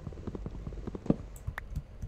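An axe chips at a block until it breaks.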